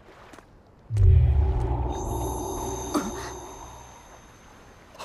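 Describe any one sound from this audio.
A magical burst booms and rings out.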